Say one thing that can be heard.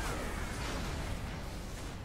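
A fiery blast roars and crackles.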